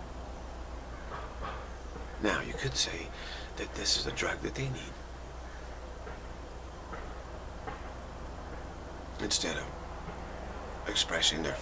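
A middle-aged man speaks calmly and close to a microphone, with pauses.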